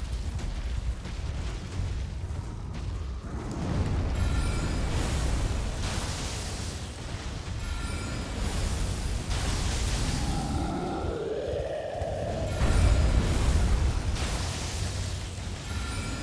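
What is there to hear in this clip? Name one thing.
Heavy blows and clashes of combat ring out.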